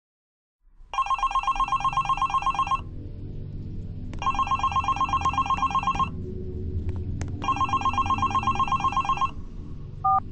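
A phone rings loudly in repeated bursts.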